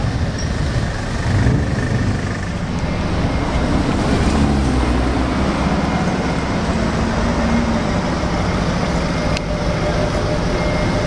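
A sports car engine revs and roars as the car pulls away.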